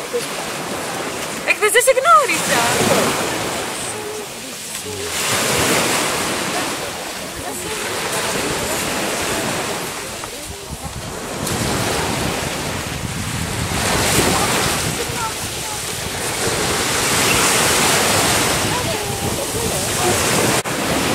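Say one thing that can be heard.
Waves wash in and out over the sand in surges.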